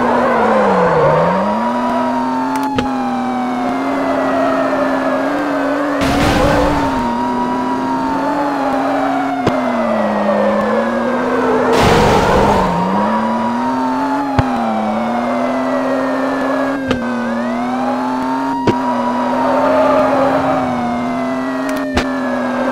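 A police siren wails steadily.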